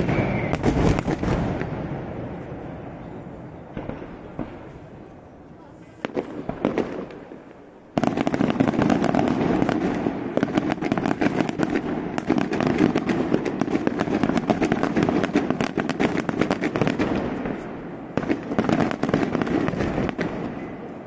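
Daytime firework salvos crackle and bang in rapid bursts in the distance, echoing across hills.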